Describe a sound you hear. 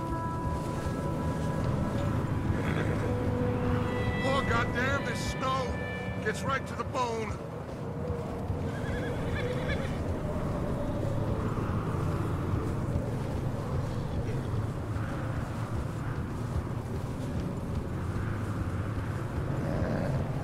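A horse's hooves crunch steadily through snow.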